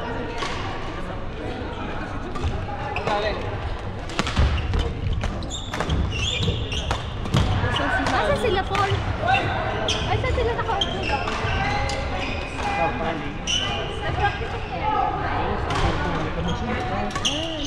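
Shoes squeak on the hall floor.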